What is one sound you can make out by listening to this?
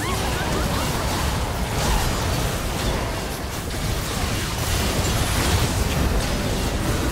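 Video game spell effects whoosh and crackle in a busy fight.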